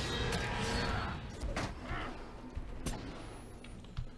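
Sword blows strike with sharp clashes.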